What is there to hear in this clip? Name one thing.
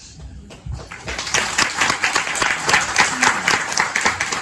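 A man claps his hands quickly and steadily.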